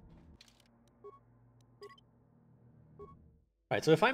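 Short electronic menu beeps sound a few times.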